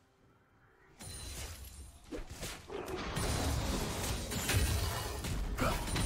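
Clashing fight sounds and spell blasts ring out in a game.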